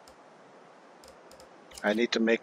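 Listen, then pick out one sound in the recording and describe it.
A game menu clicks softly as it opens.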